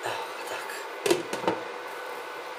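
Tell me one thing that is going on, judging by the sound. A glass lid clinks onto a metal pot.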